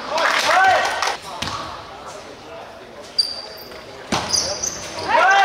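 Young players shout loudly in an echoing hall.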